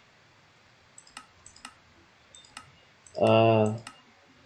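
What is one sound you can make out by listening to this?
Soft clicks tick several times in quick succession.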